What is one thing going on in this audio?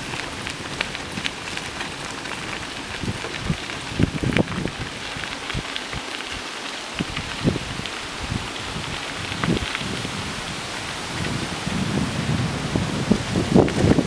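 Bicycle tyres roll and crunch over a gravel path.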